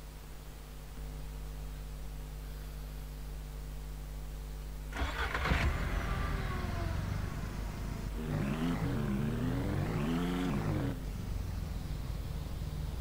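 A small vehicle engine hums steadily.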